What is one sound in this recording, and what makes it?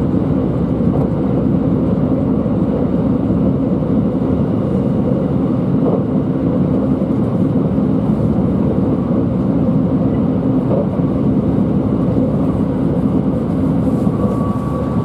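A train rumbles steadily along the tracks from inside a carriage.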